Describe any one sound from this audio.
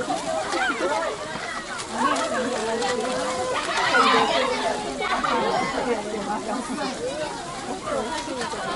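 A crowd of men, women and children chatter and call out outdoors.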